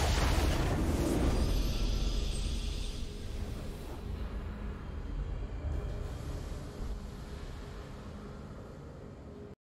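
A triumphant fanfare swells and fades.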